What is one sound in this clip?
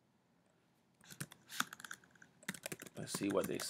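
Keys click on a keyboard as someone types.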